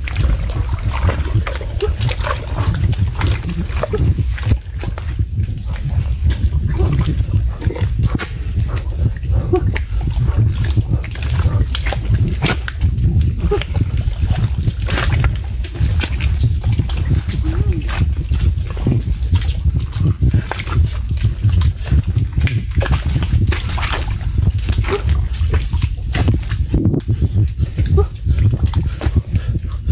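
Footsteps squelch through wet mud.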